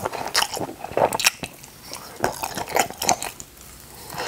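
A man bites into food on a skewer with a crunch.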